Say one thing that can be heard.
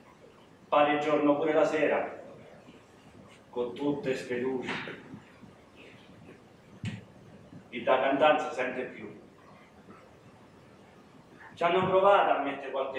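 A young man speaks expressively in short bursts with pauses.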